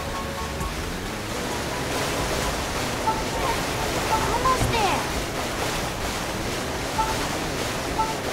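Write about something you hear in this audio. Water sprays and splashes.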